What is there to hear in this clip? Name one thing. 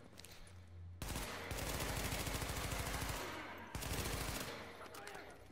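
A rifle fires rapid bursts of gunshots that echo in a large concrete space.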